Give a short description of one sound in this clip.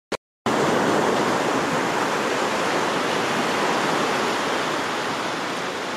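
Small waves wash onto a sandy beach.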